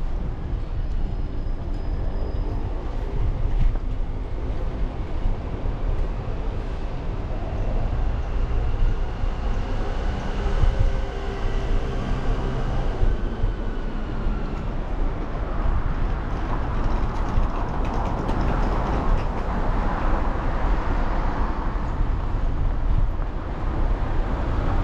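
Bicycle tyres roll over paving stones.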